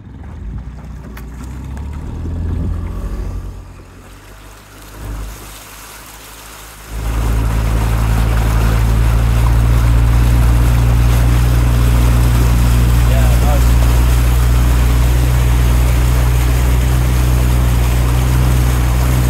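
Oars dip and splash rhythmically in the water.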